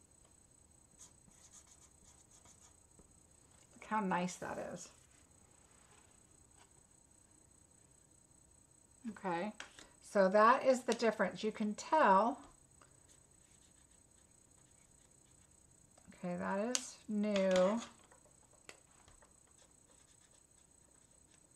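A felt-tip pen squeaks softly across paper.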